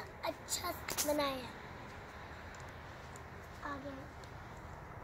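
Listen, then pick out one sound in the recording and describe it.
A young girl calls out in a high voice close by.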